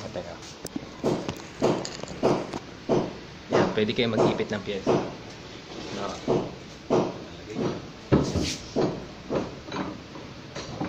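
Wood knocks and clatters against a workbench.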